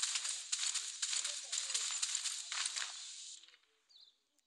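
Footsteps patter quickly across grass.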